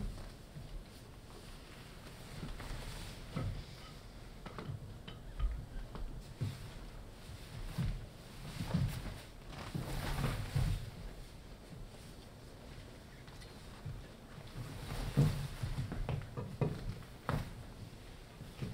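Wooden sticks tap and knock on a stage floor.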